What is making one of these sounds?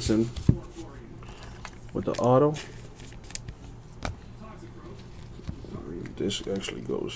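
Plastic card cases click and rustle as they are handled.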